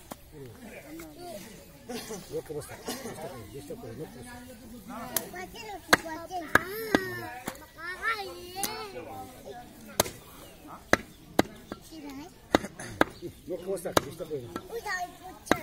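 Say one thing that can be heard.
A cleaver chops sharply into a wooden block.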